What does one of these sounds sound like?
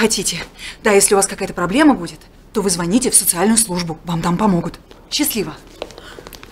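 A young woman speaks with animation close by.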